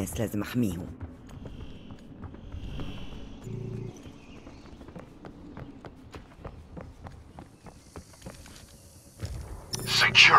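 Footsteps tap quickly and steadily on hard ground.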